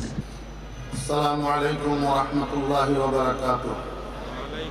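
A man chants a greeting into a microphone, heard through loudspeakers in a large echoing space.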